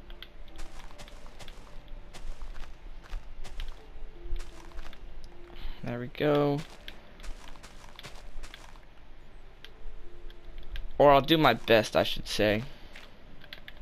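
A shovel crunches into loose dirt in quick, repeated bursts.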